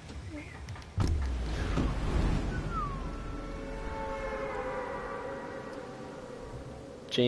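A loud rush of wind roars steadily as a figure falls through the air.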